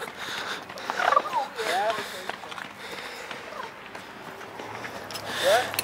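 A young man shouts and whoops nearby outdoors.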